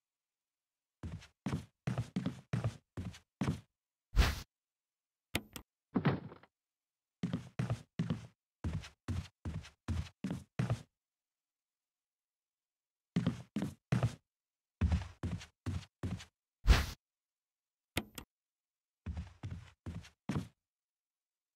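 Footsteps thud across a wooden floor at a steady walking pace.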